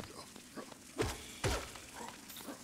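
Sharp slashing hits ring out in a short burst of combat.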